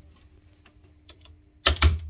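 A screwdriver clicks against a terminal screw.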